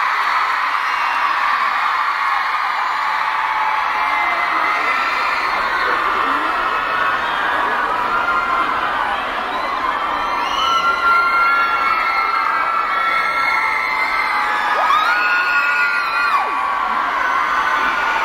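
A large crowd of young women screams and shrieks in a large indoor hall.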